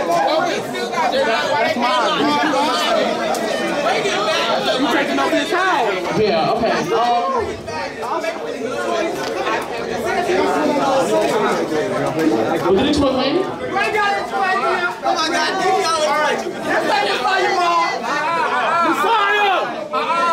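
A crowd of young men and women talks and shouts with excitement indoors.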